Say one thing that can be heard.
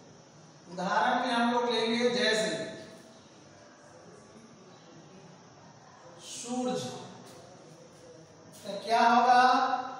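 A man speaks calmly nearby, pausing between phrases.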